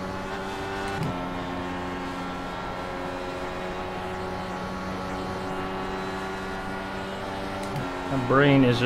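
A racing car engine briefly dips as gears shift.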